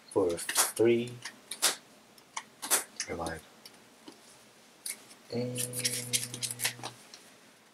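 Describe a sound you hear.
Playing cards slap and slide on a play mat, close by.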